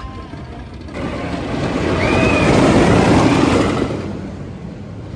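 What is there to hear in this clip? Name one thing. A roller coaster train roars and rumbles along its track.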